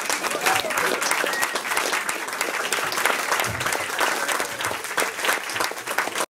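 An audience claps and cheers close by in a room.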